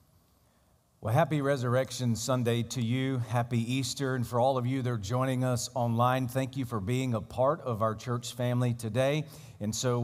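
A man speaks steadily into a microphone over loudspeakers in a large hall.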